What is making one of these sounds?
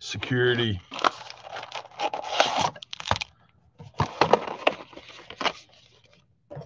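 A foil card wrapper crinkles and tears open.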